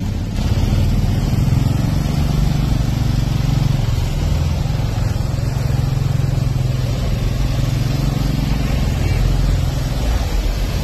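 A Royal Enfield single-cylinder motorcycle thumps slowly in low gear over rocks.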